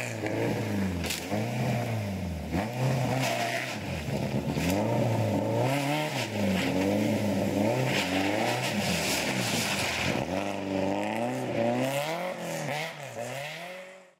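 Tyres skid and scrabble on a snowy road.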